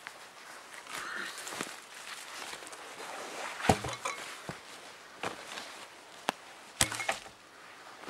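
A heavy log scrapes and thumps as it is lifted.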